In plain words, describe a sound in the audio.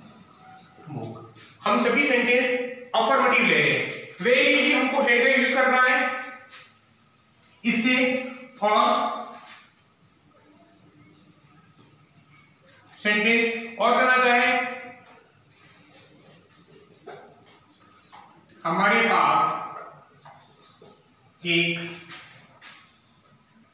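A man speaks clearly and calmly close by, explaining in bursts.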